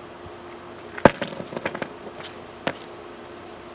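Rocks knock and scrape on concrete.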